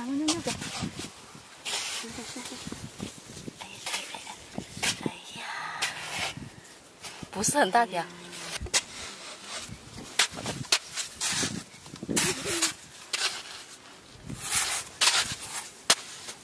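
A hoe chops into damp soil with dull thuds.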